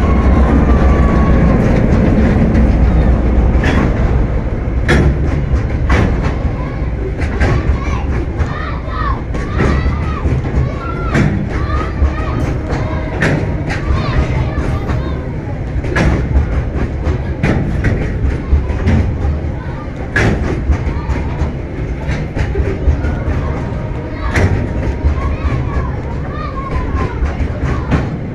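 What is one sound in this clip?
A freight train rumbles past close by.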